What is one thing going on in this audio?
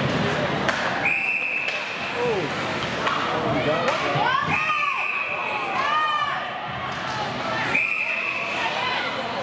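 A referee's whistle blows sharply several times.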